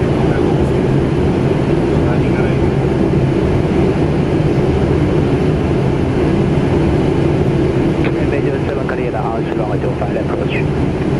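A steady, loud roar of aircraft engines and rushing air fills a cockpit.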